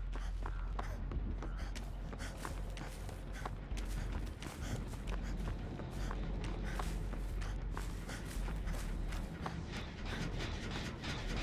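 Footsteps run quickly through tall grass.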